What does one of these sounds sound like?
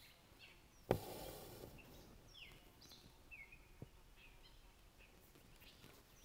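A thread rasps softly as it is pulled through cloth.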